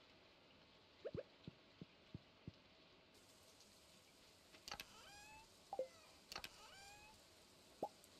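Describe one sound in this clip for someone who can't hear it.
Short electronic clicks and chimes sound from a game.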